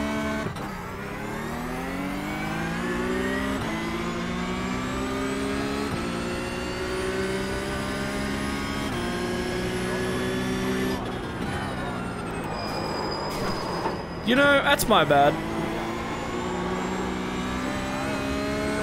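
A racing car engine revs up and shifts through gears again and again.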